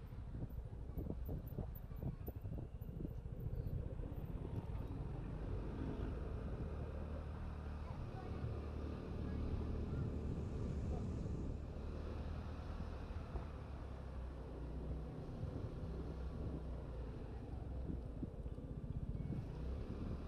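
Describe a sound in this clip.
Wind rumbles steadily outdoors, buffeting close up.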